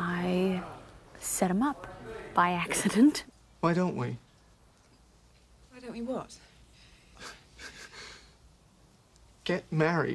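A woman speaks in reply, close by.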